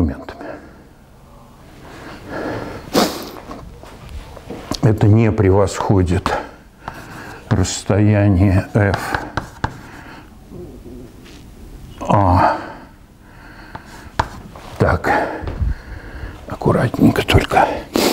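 An elderly man lectures calmly in a large echoing room.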